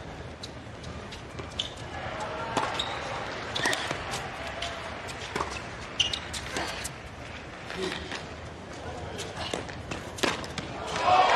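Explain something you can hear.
Tennis balls pop sharply off rackets in a rally.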